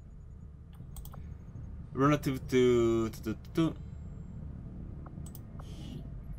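A game menu clicks softly as options are picked.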